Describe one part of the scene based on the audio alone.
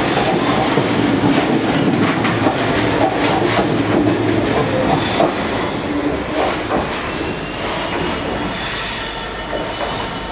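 A diesel locomotive engine idles with a deep rumble in a large echoing station.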